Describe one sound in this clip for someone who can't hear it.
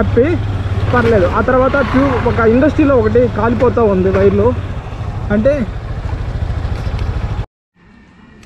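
A motorcycle engine rumbles steadily while riding, then cuts off.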